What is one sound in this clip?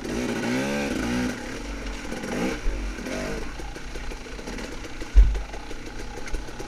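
Tyres crunch over dry leaves and rocks.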